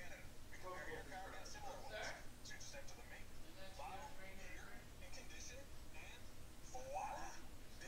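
A young man speaks with animation through a television speaker.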